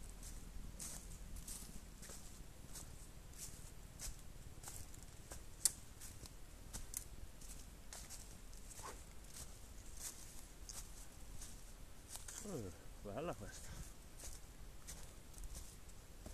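Footsteps crunch steadily through dry fallen leaves.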